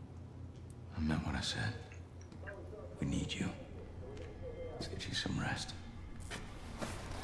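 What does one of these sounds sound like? A middle-aged man speaks calmly and close by, in a low voice.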